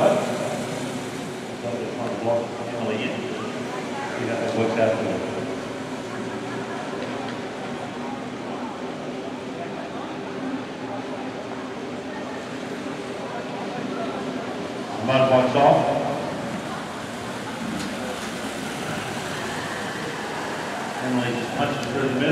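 A motorbike engine hums steadily nearby.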